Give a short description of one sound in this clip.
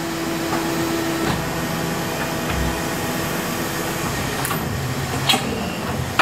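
An injection mould slides open with a mechanical whir.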